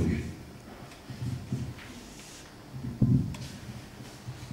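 A man speaks into a microphone in a room that echoes.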